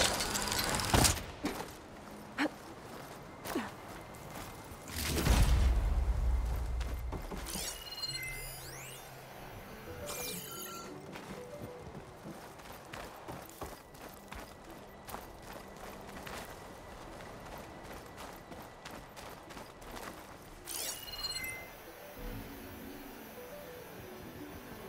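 Footsteps crunch on dirt and stone.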